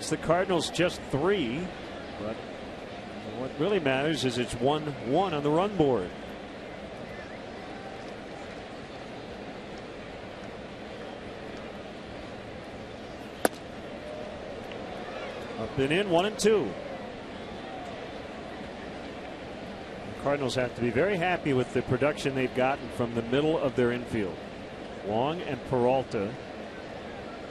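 A crowd murmurs steadily in a large outdoor stadium.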